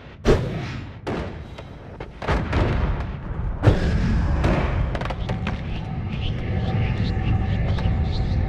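Magic blasts burst and crackle in quick succession.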